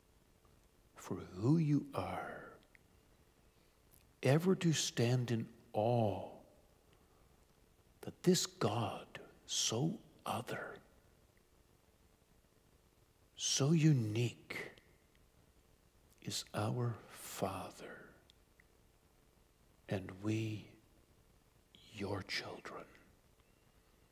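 A middle-aged man speaks calmly and slowly into a microphone, with pauses between phrases.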